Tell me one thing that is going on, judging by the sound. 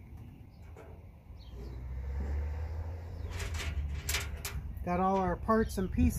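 Small metal bolts click and rattle on a tabletop.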